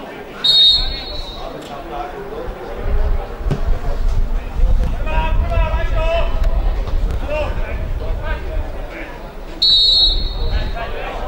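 A referee's whistle blows sharply, twice.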